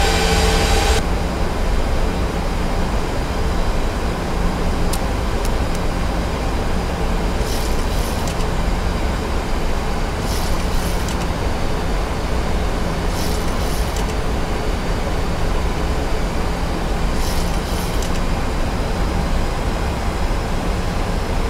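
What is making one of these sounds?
Jet engines drone steadily, heard from inside a cockpit.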